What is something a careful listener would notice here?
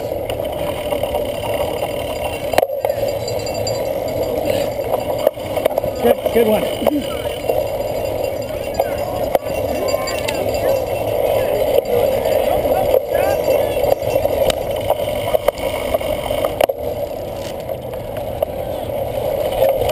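A cyclocross bike rattles over bumps.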